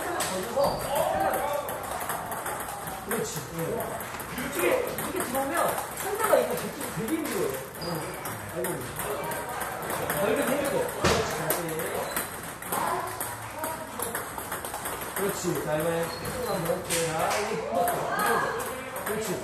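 A table tennis ball bounces on a table.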